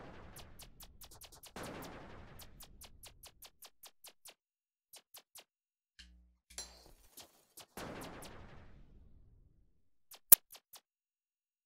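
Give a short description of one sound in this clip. Short electronic blips tick rapidly in a video game.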